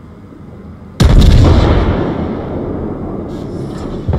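Heavy naval guns fire with a deep, rumbling boom.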